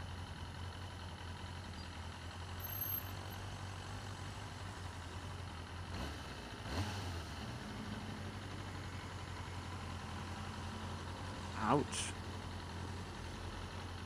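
Cars and trucks drive past nearby.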